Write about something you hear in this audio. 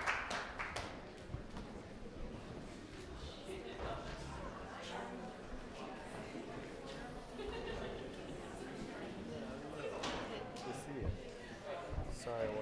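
A crowd of men and women chatters in an echoing room.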